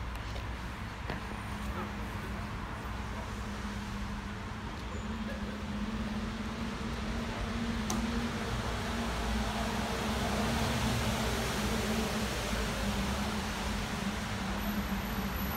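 A small electric car hums softly as it slowly drives away.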